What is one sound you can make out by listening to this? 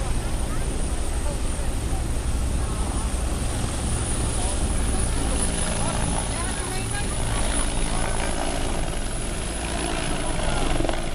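Strong wind from a helicopter's rotor roars across the microphone.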